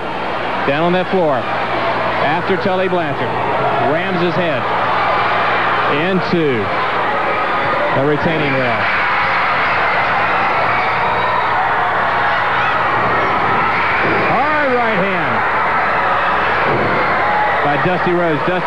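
A crowd of men chants loudly in repeated rising and falling calls.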